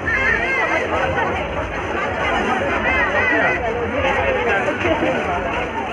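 A large crowd chatters loudly all around outdoors.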